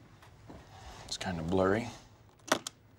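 A young man speaks briefly and calmly nearby.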